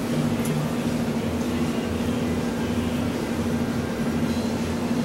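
An elevator hums with a low, steady drone.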